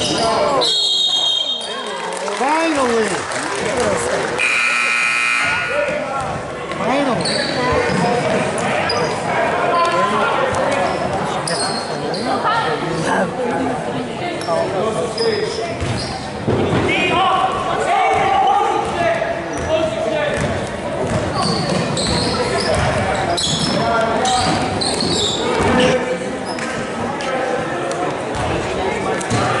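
A crowd of spectators talks and cheers in a large echoing gym.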